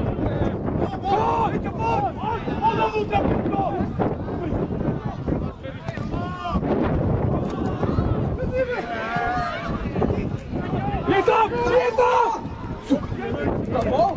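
Young men shout to each other across an open field, far off.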